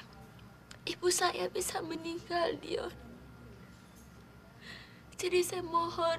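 A woman speaks in a tearful, shaky voice nearby.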